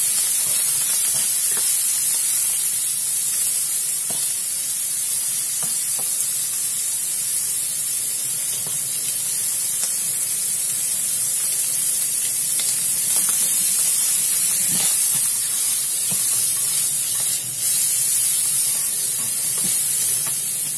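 A metal ladle scrapes and clinks against a wok.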